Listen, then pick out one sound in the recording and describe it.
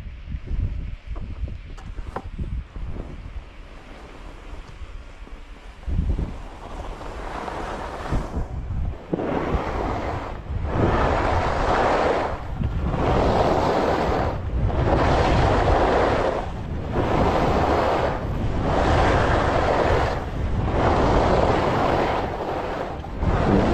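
Wind rumbles against the microphone while moving downhill.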